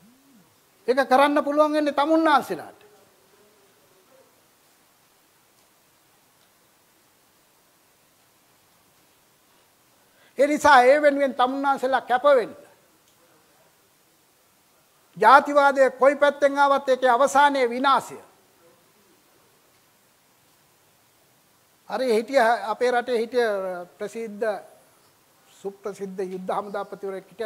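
An elderly man speaks into a microphone with animation, in short bursts with long pauses.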